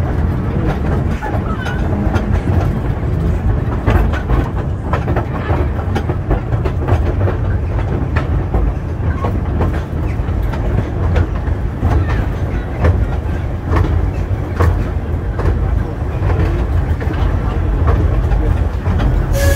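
A small open train rumbles and rattles along its track.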